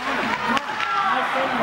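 A hockey stick smacks a puck.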